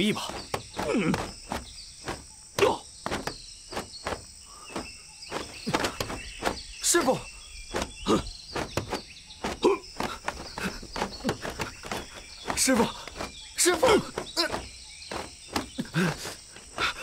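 Blows land with sharp thuds again and again.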